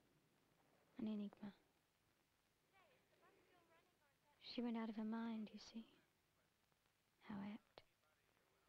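A young woman speaks calmly and slowly, close by.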